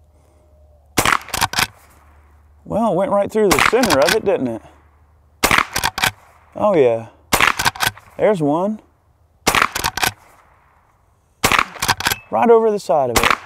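A gun fires sharp, loud shots one after another outdoors.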